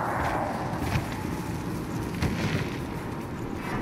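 Footsteps run across rocky ground.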